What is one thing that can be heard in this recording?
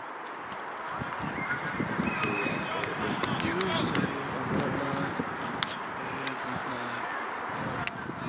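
Young men shout to one another across an open field outdoors.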